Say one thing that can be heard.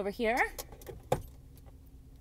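A glove compartment latch clicks and the lid drops open.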